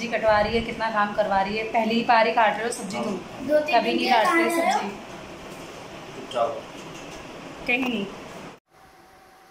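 A young woman speaks close by in a lively, cheerful way.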